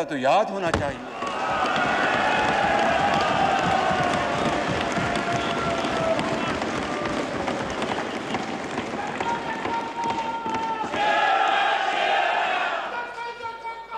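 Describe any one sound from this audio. A large crowd shouts and chants loudly in an echoing hall.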